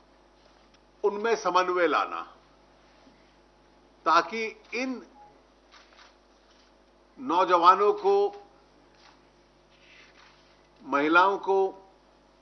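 An older man speaks calmly into a microphone in short bursts with pauses.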